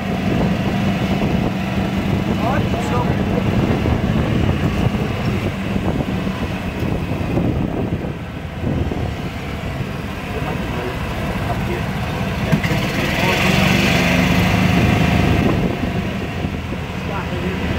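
An electric cart's motor whirs steadily as it rolls along a street.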